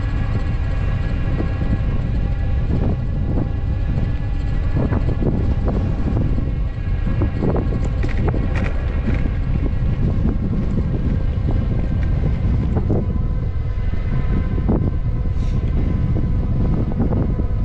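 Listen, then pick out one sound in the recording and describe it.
Cars drive past on a road nearby.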